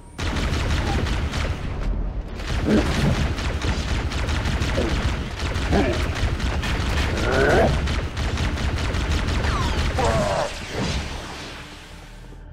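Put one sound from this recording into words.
A plasma weapon fires in rapid bursts.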